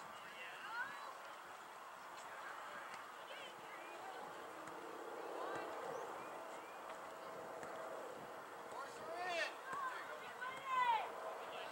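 Young girls call out to each other across an open field.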